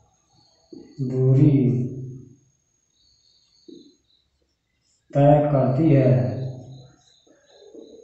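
A man speaks calmly and clearly, close by, in pauses.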